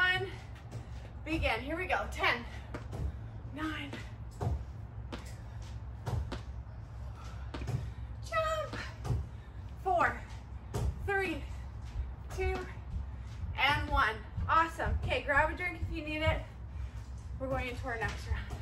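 A woman talks with animation, close by and a little breathless.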